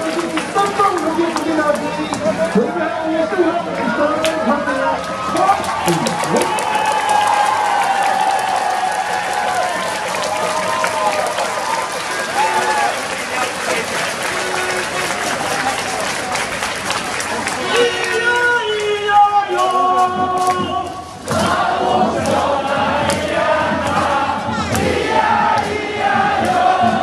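A large crowd of fans cheers and chants loudly nearby.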